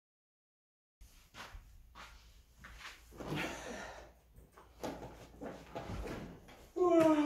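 Fabric rustles as someone settles onto a sofa.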